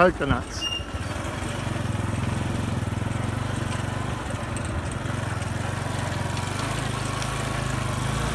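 A small motor vehicle engine hums steadily while driving.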